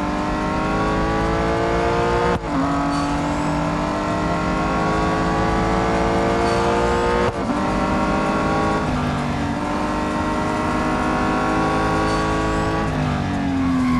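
A car engine revs high, rising in pitch and dropping sharply at each gear change.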